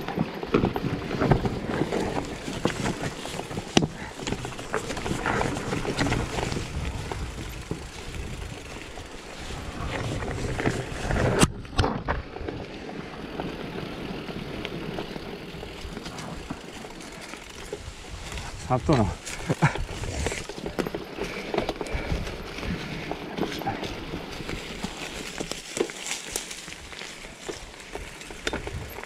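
Bicycle tyres crunch and roll over a rough dirt trail.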